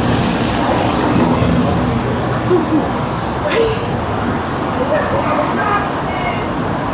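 Young people chat as they walk past close by.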